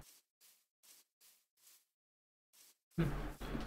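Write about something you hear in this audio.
Footsteps pad softly on grass.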